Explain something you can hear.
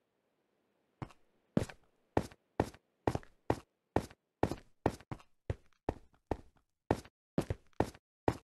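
Footsteps tread on stone in a steady rhythm.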